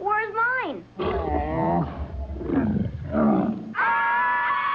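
Several children and a man shout excitedly close by.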